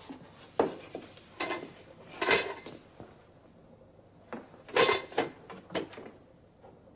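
A door rattles and bangs shut nearby.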